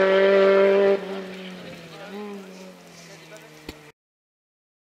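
A car engine fades away into the distance.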